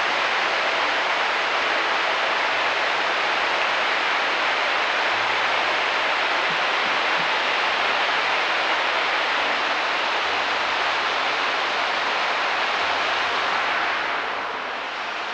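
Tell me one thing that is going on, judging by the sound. A river rushes over rocks below with a steady roar.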